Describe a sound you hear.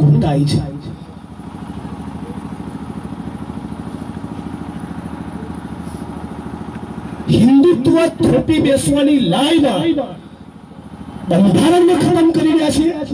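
A man speaks loudly and forcefully through a microphone and loudspeaker outdoors.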